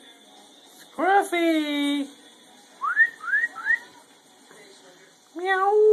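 A small terrier howls in drawn-out, wavering notes.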